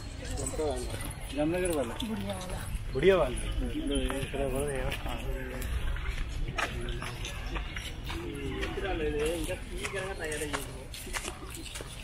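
A middle-aged woman talks casually nearby outdoors.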